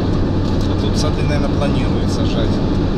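A man talks inside a car.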